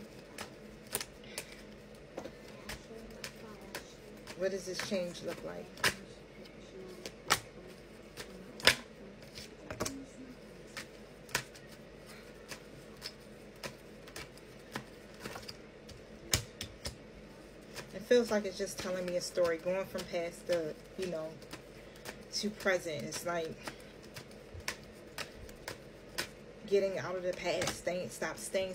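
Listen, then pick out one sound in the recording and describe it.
Cards flick and snap as they are shuffled.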